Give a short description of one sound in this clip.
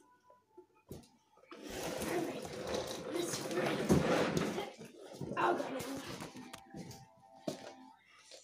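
Balloons rustle and squeak as a child handles them.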